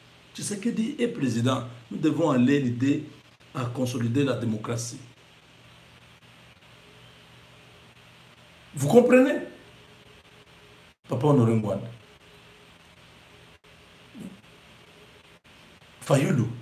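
A middle-aged man talks with animation close to a microphone, pausing often.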